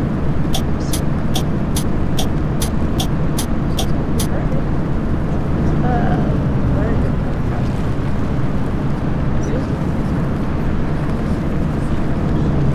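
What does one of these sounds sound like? A bus engine hums steadily while driving along a road.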